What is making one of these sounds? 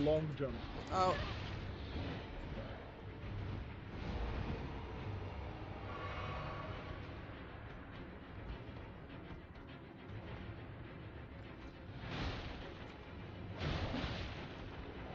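Sword blows slash and thud in a fight.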